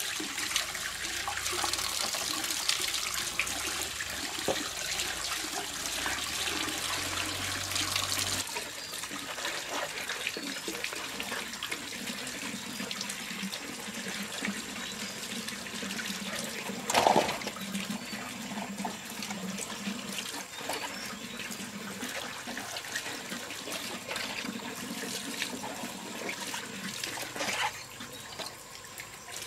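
Water runs from a tap and splashes onto the ground.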